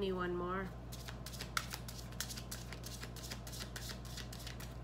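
Cards riffle and shuffle rapidly in a woman's hands.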